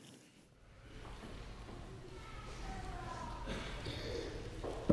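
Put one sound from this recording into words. A pipe organ plays slow sustained notes in a large echoing hall.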